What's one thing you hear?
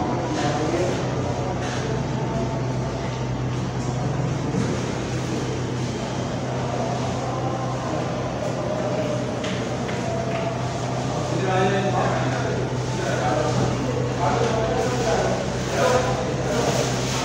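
An air conditioner hums steadily.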